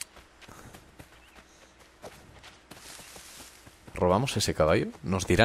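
Footsteps run through rustling grass.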